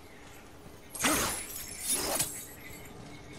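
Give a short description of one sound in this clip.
Heavy blows whoosh and thud twice in quick succession.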